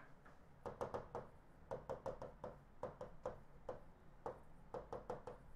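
A marker squeaks and taps against a whiteboard in short strokes.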